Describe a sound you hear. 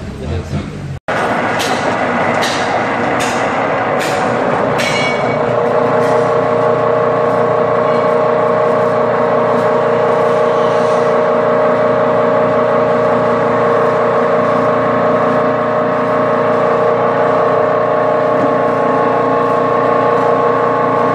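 A pelleting machine runs with a loud, steady hum and grinding.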